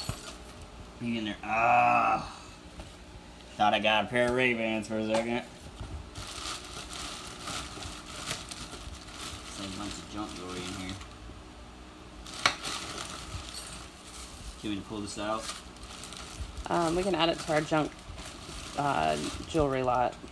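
A plastic bag rustles and crinkles as hands dig through it.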